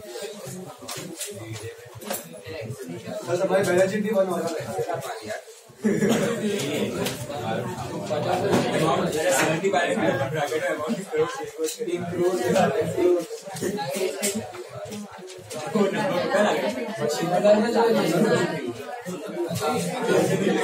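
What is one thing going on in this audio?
A man talks steadily, explaining.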